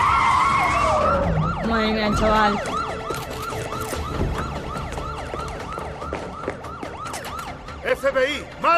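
A police siren yelps rapidly.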